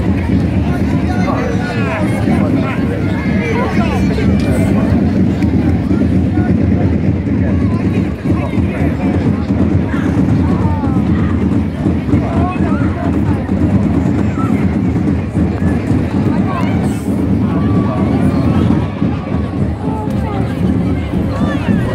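A large outdoor crowd chatters and calls out loudly.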